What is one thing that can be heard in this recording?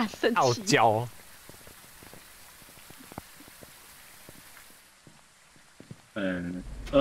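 Footsteps tread on hard ground.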